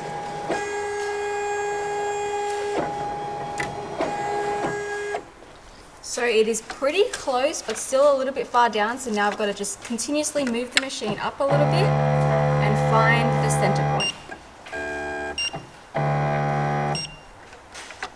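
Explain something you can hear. An embroidery machine hums and whirs in short bursts, starting and stopping.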